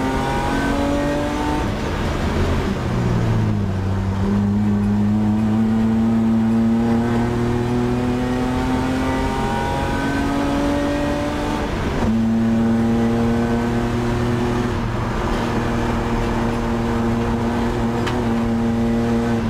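A race car engine roars loudly inside the cabin, rising in pitch through the gears.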